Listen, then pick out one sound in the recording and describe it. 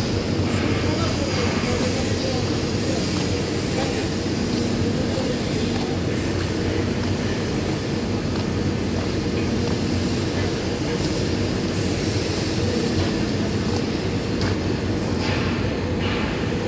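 Arc welding buzzes and crackles steadily in a large echoing hall.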